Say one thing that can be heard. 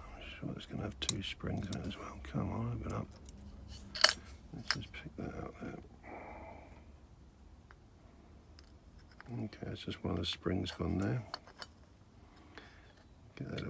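Small metal parts click and tap against each other.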